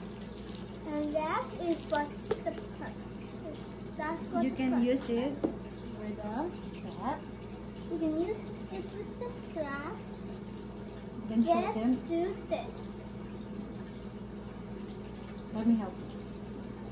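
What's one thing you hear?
A girl talks calmly close by.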